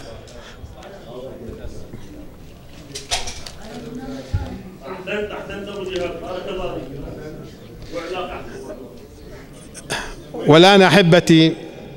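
A middle-aged man speaks calmly through a microphone in an echoing room.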